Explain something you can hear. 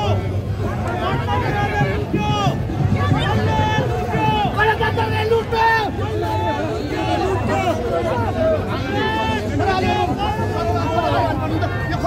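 A crowd of men chants slogans loudly together outdoors, close by.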